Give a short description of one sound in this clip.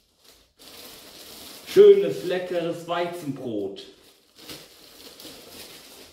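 Plastic bread bags rustle and crinkle as they are handled.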